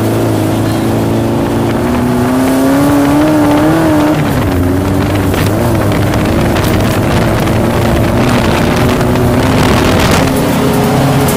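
An old truck engine rumbles and whines steadily as it drives.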